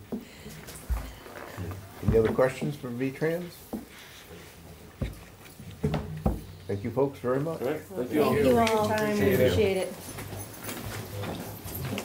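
A bag rustles as a young man handles it.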